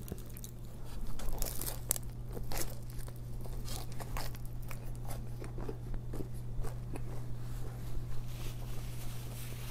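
A young man chews crunchy food with his mouth close to the microphone.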